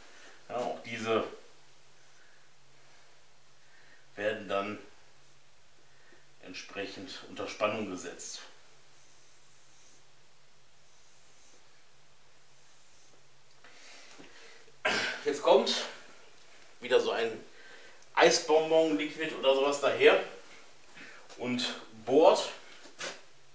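A man talks calmly nearby, in short phrases with pauses.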